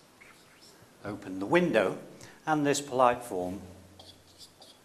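A middle-aged man speaks clearly into a clip-on microphone, like a teacher explaining.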